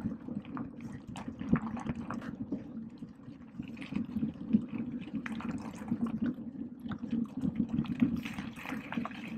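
A bicycle chain whirs steadily with pedalling.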